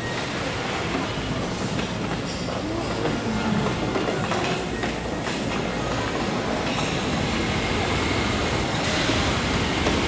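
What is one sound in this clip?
A hand cart's wheels rattle along the floor.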